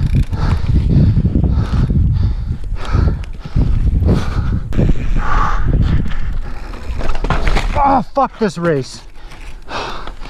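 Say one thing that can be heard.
Bike tyres crunch and skid over loose dirt and rocks.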